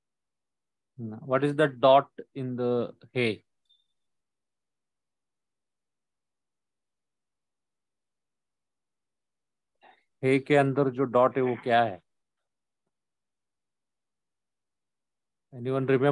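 A man speaks calmly, explaining, over an online call.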